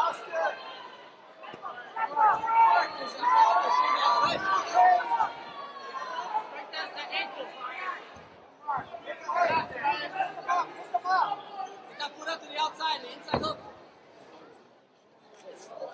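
A crowd of men shouts and cheers close by.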